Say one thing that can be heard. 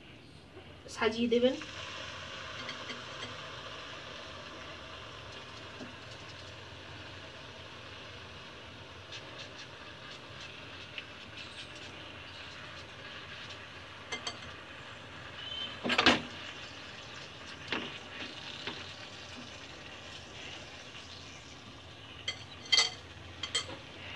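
Pieces of chicken drop into hot oil with a loud hiss.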